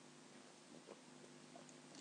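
A man drinks water from a plastic bottle.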